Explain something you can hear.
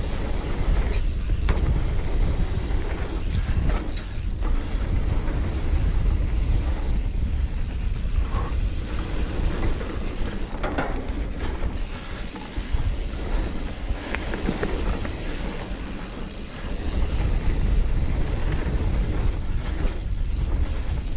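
Wind rushes past loudly, as if outdoors at speed.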